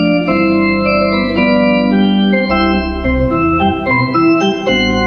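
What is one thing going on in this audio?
An organ plays a slow, sustained melody in a large echoing room.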